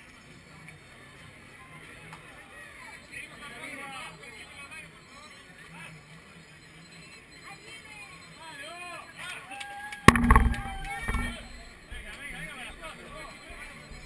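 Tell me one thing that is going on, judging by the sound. A crowd of men and women chatters and cheers outdoors.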